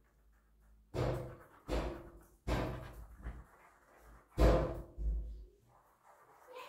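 A sponge pats softly against skin close by.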